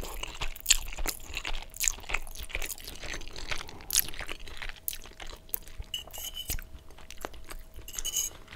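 A man chews pasta wetly close to a microphone.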